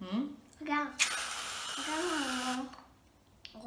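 Whipped cream hisses out of a spray can.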